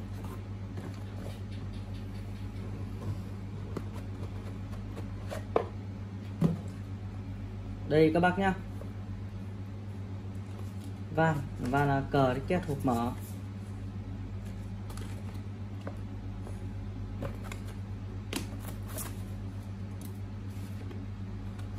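Cardboard boxes scrape and rustle as hands handle them.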